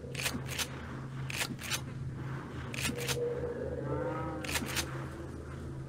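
A shotgun's pump action clacks back and forth several times.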